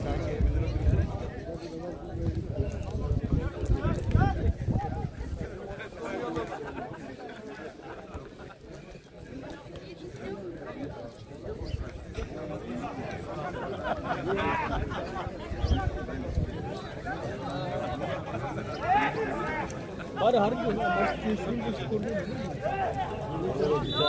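Young men shout to each other across an open field, heard from a distance.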